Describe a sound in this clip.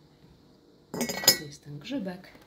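A porcelain lid clinks onto a teapot.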